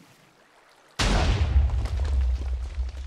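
Sand blocks crunch as they are broken.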